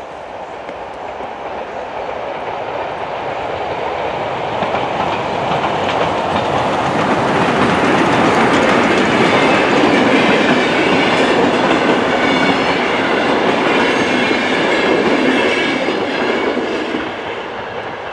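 A train rumbles past close by, its wheels clattering loudly over the rails.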